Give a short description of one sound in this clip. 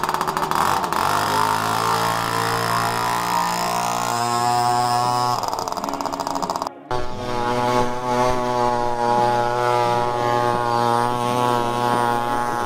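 A two-stroke Puch Maxi moped pulls away and rides off.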